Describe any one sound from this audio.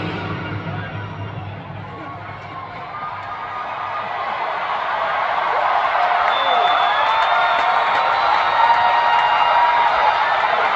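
A large stadium crowd roars and cheers in a huge open space, growing louder.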